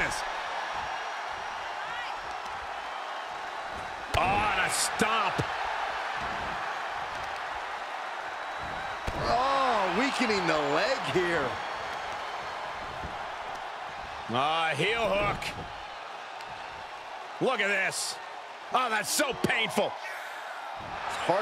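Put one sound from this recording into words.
A large crowd cheers steadily.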